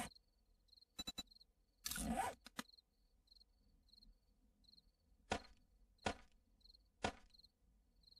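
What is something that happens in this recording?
Short clicks sound from a game's menu.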